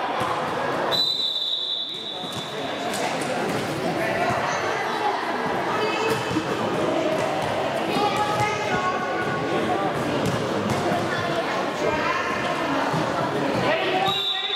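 A whistle blows loudly.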